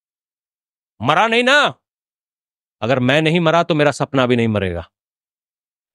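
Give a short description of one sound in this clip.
A middle-aged man preaches with animation through a microphone.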